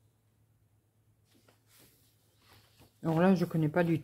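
A paper page is turned over.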